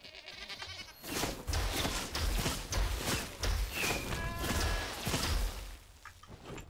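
A magical blast bursts with a loud whoosh.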